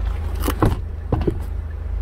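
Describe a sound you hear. A gloved hand taps on a car's interior trim.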